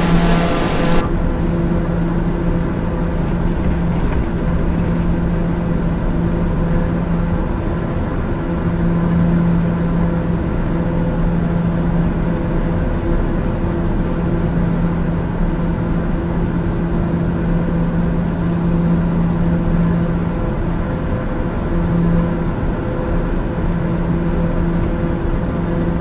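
A single-engine turboprop hums muffled inside the cockpit.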